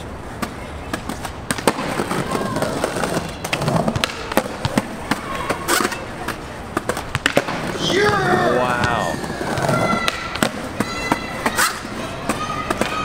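A skateboard snaps and clacks against concrete.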